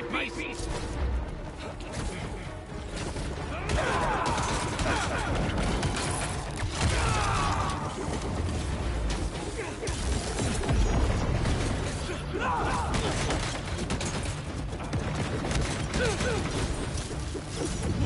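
Heavy blows and thuds of a fight ring out with loud rumbling.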